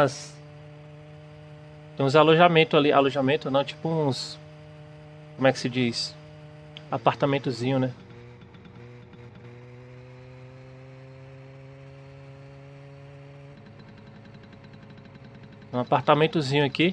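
A small motorbike engine hums steadily.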